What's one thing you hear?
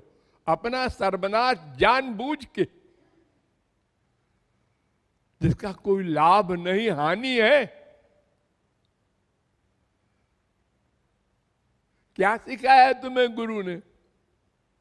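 An elderly man sings in short phrases through a microphone, with pauses between them.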